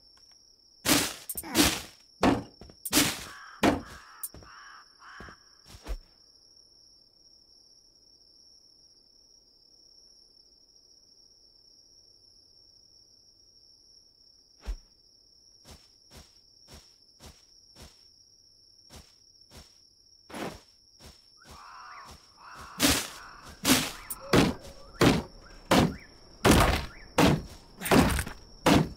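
Sharp thuds and clicks of a game character harvesting plants.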